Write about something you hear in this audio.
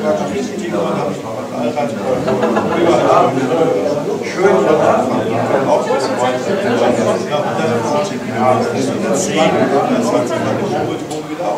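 Several adults chat in the background.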